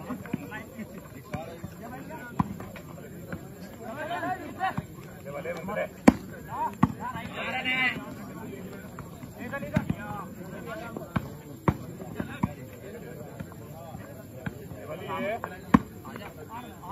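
A crowd of onlookers chatters in the background.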